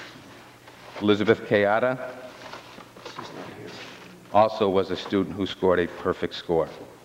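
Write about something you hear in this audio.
A man speaks through a microphone.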